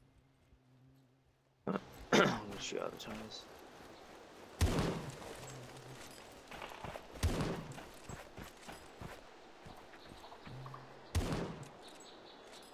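Footsteps crunch through grass and dry leaves.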